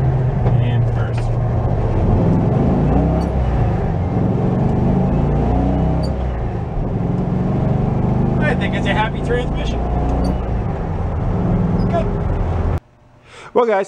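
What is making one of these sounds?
A vehicle engine rumbles steadily while driving on a road.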